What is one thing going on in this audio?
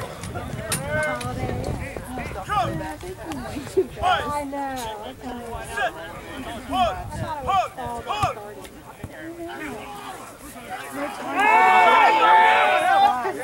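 Men and women spectators talk nearby outdoors.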